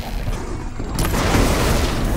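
A loud blast bursts and shatters metal.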